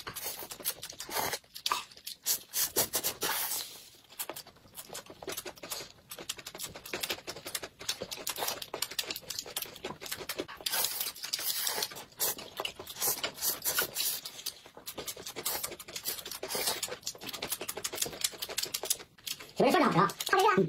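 A man and a woman slurp noodles loudly, close by.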